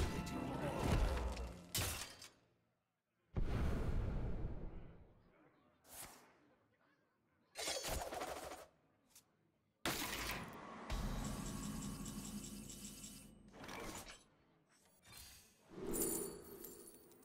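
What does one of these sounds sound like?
Video game sound effects whoosh and chime in short bursts.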